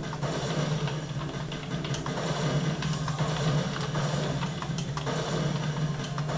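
Gunfire and game sounds play from loudspeakers.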